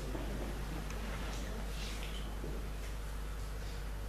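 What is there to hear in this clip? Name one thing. A violin plays softly in a large echoing hall.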